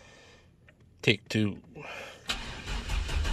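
A starter motor cranks briefly.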